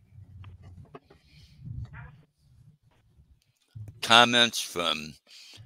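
An older man speaks calmly through a headset microphone, heard as over an online call.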